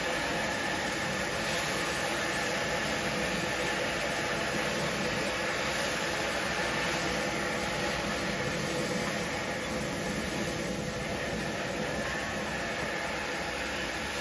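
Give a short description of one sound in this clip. A spatula scrapes and tosses food in a wok.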